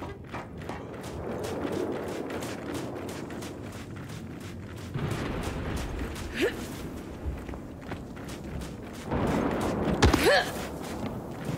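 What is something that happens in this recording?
Heavy footsteps slosh through deep, thick liquid.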